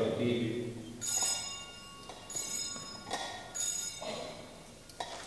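Small hand bells ring.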